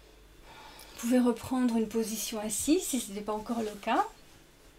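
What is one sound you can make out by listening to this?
A young woman speaks calmly and softly into a close microphone.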